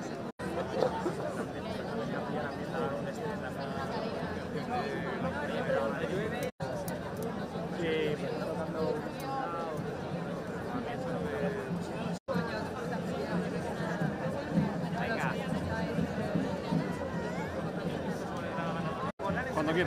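A crowd of adults chatters outdoors, with many voices at once.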